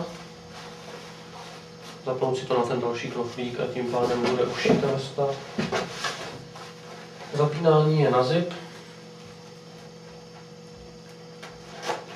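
Fabric rustles and crinkles as it is handled.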